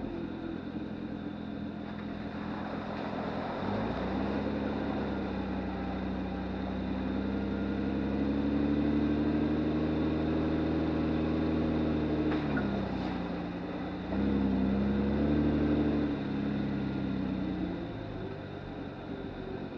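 A vehicle engine hums close by, revving up and easing off.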